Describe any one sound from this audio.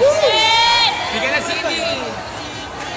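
A young woman screams excitedly close by.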